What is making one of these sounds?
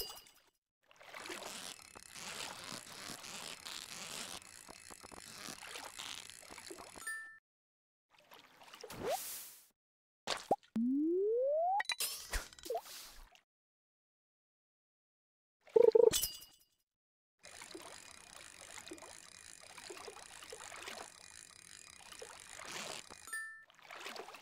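A fishing reel whirs steadily in a video game.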